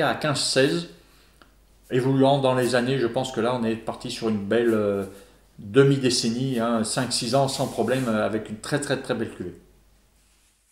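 A middle-aged man talks calmly and clearly into a close microphone.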